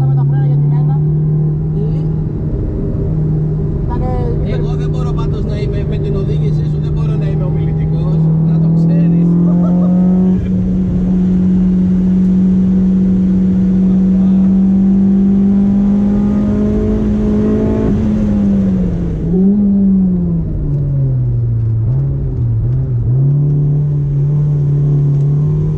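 A car engine roars loudly from inside the cabin, its pitch rising and falling with the revs.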